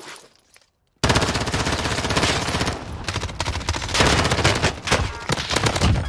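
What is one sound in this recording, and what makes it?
An automatic rifle fires rapid bursts up close.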